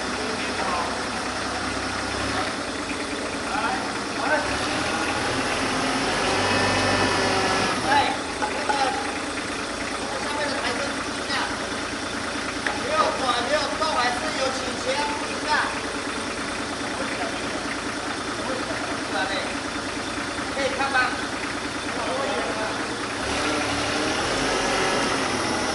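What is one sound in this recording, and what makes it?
A forklift engine runs steadily nearby.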